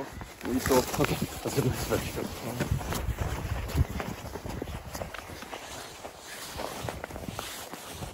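Boots crunch and squeak on packed snow.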